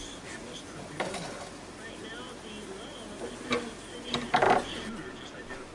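A spatula scrapes and clatters against a frying pan.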